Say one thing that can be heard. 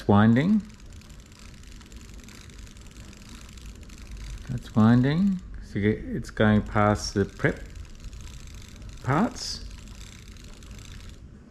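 A small screwdriver scrapes and clicks on a metal screw.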